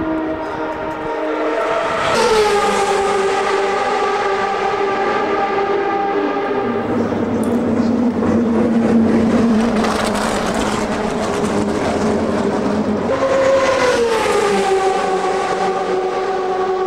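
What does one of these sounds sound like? A racing car engine idles loudly close by, its pitch rising and dropping as it revs.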